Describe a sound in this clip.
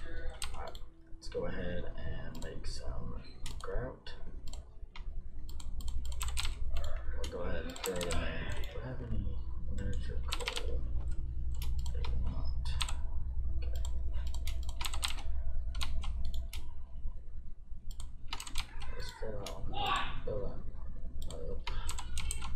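Short clicks sound as items are picked up and placed in a game menu.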